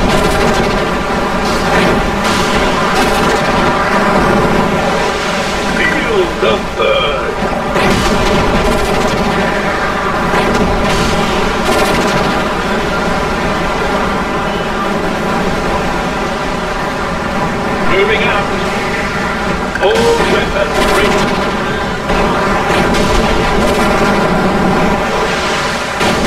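Explosions boom in a game battle.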